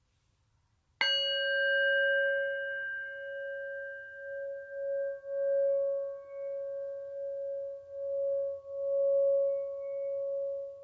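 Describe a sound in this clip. A singing bowl is struck and rings with a clear, steady tone.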